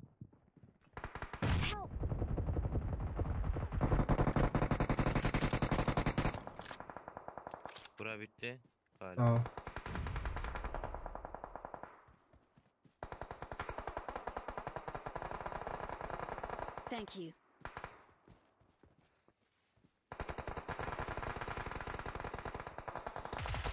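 Rapid gunfire rattles in long bursts.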